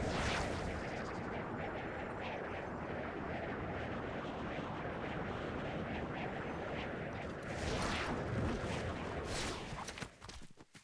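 Wind rushes steadily past a gliding game character.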